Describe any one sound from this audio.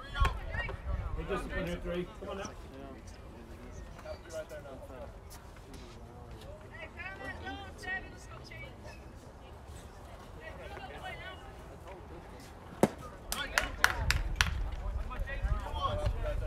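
Players and spectators shout and cheer in the distance.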